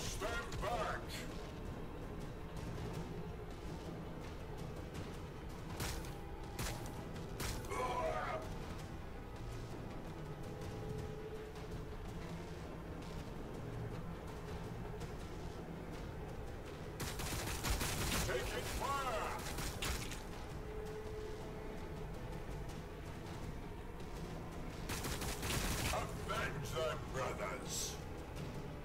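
Gunfire and explosions crackle in a fierce battle.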